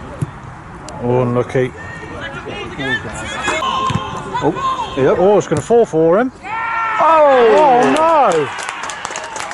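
Young men shout and cheer outdoors.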